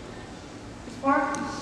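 A young woman sings into a microphone, amplified in a large echoing room.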